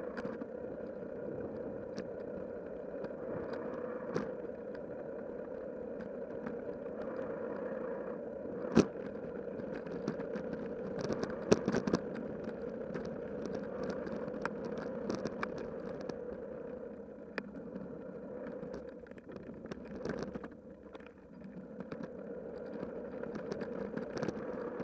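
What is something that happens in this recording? Bicycle tyres roll with a steady hum along a paved path.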